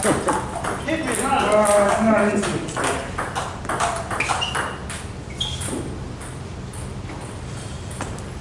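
Ping-pong balls click against paddles and tables.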